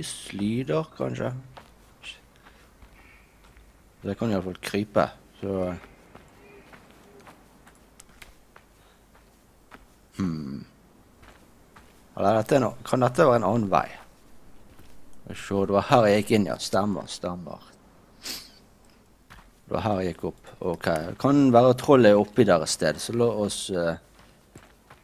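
A man talks calmly in bursts into a close microphone.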